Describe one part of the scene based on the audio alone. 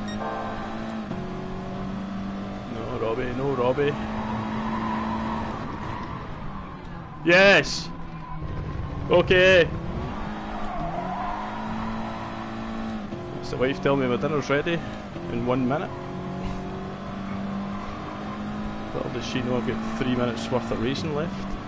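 A racing car engine roars and shifts through gears.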